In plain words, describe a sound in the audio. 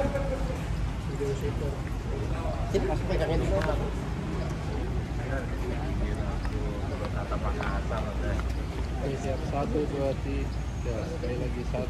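Several men and a woman talk and chatter close by, outdoors.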